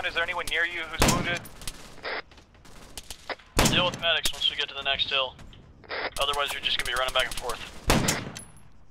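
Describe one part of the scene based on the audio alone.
A rifle fires loud single shots with a ringing echo.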